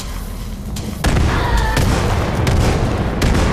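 A second explosion bursts with a heavy roar.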